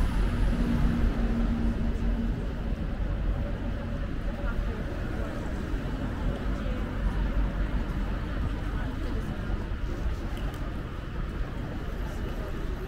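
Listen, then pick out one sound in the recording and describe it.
City traffic rumbles steadily along a street outdoors.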